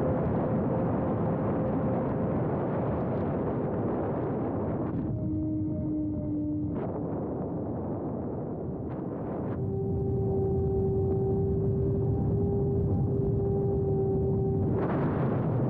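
Wind rushes loudly past a small aircraft in flight.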